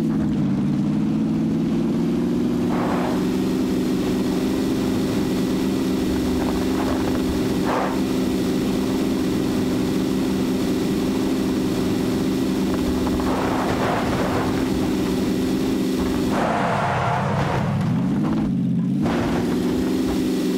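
Tyres rumble over a rough dirt road.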